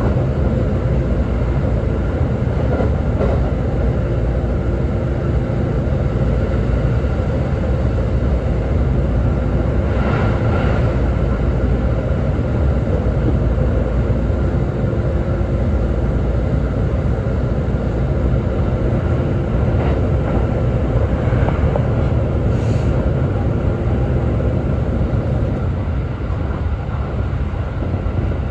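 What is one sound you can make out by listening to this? A train rumbles along steadily, heard from inside a carriage.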